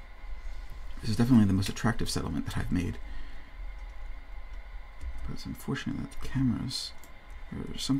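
A man speaks casually and close into a microphone.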